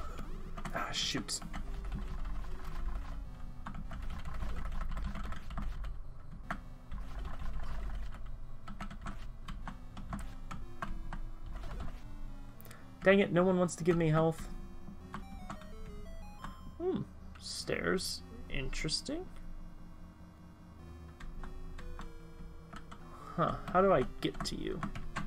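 Retro electronic game music plays steadily.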